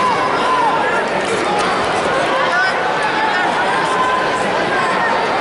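A large crowd shouts and cheers in an echoing arena.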